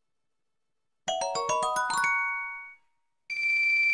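A short bright chime melody rises and plays out.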